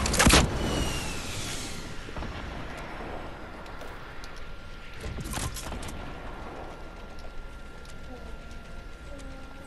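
Wooden walls and ramps go up with quick knocking thuds.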